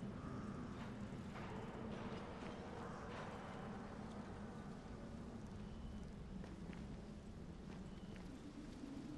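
Footsteps scrape and thud on rock.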